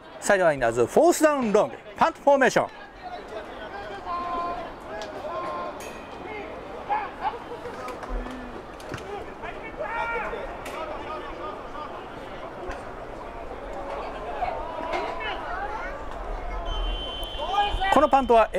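A crowd of spectators cheers and shouts from the stands outdoors.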